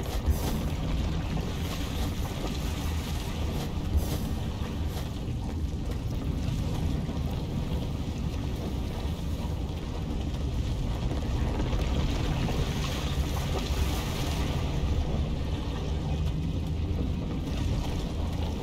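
Molten lava rumbles low and steadily.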